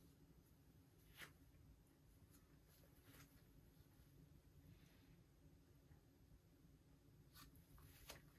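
A plastic spatula scrapes and smears filler paste on a mixing board.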